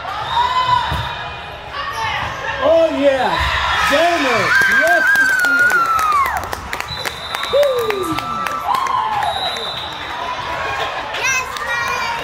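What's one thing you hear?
A group of young girls cheers and shouts excitedly in a large echoing hall.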